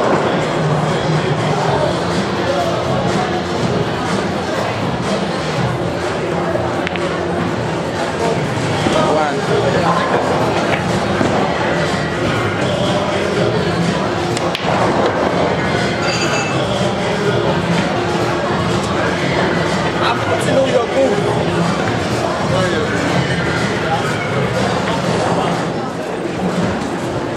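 Many men and women chatter and talk nearby in a busy, echoing room.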